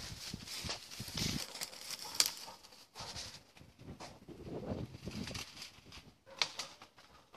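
Footsteps crunch and rustle through dry leaves and undergrowth.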